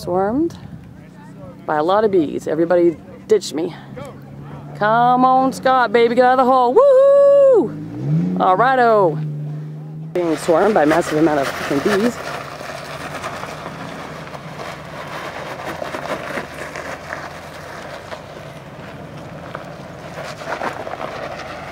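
An off-road vehicle's engine rumbles as it crawls over rocks.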